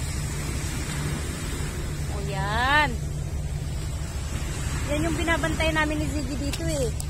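Small waves break and wash onto a pebbly shore.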